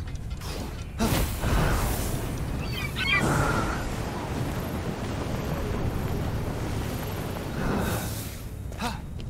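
Wind rushes past during a glide.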